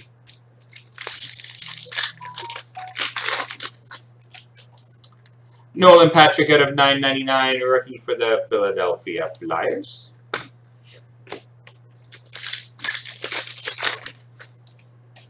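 A foil card pack crinkles and tears open.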